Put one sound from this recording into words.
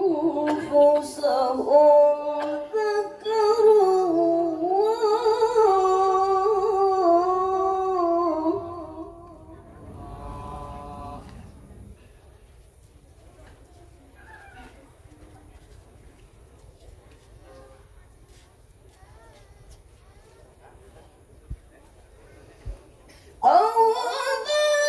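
A young woman sings loudly into a microphone through loudspeakers.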